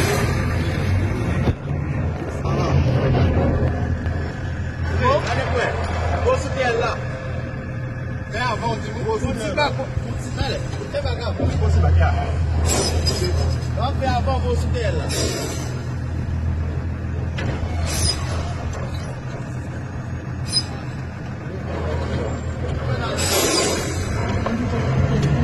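Young men talk loudly nearby.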